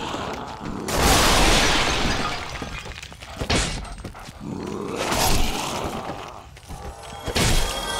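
A heavy weapon swings and strikes with a loud crash.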